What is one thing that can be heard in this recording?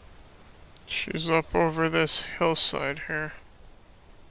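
A man speaks briefly into a headset microphone.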